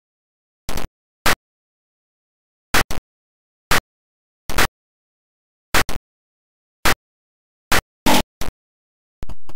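Short electronic blips sound at a slow, uneven beat.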